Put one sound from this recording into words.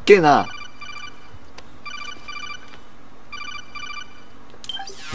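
An electronic call tone beeps in short repeated bursts.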